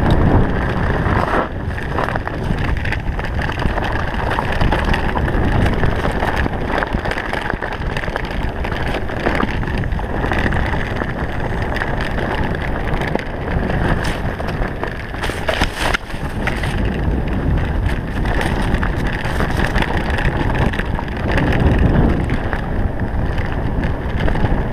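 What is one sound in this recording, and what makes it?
Wind rushes loudly past a bike rider.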